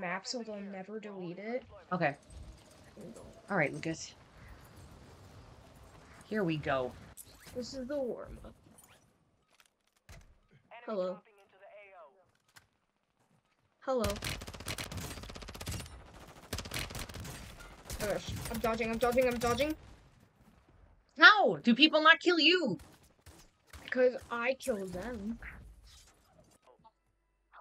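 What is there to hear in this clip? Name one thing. A woman talks with animation close to a microphone.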